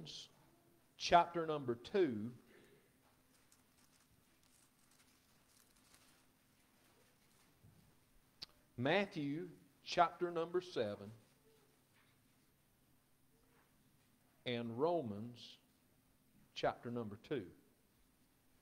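A middle-aged man speaks calmly through a microphone in an echoing room, pausing between phrases.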